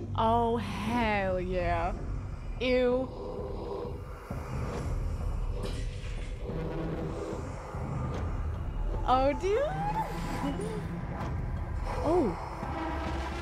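A young woman squeals and shrieks into a microphone.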